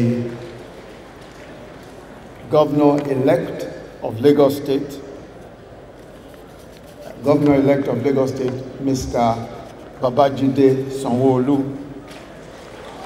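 A man speaks slowly and formally into a microphone, heard through loudspeakers in a large echoing hall.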